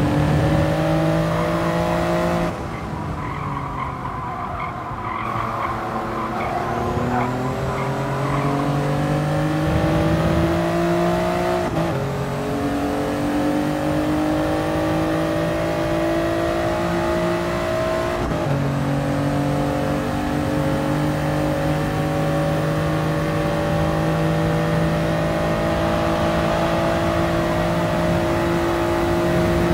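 A racing car engine roars and revs, dropping through a corner then climbing as gears shift up.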